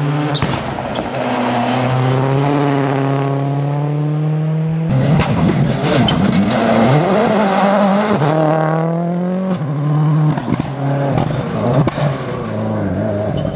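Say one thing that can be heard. A rally car engine roars loudly as the car speeds past.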